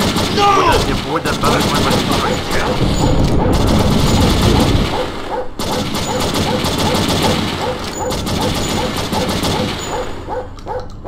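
A bus engine idles nearby.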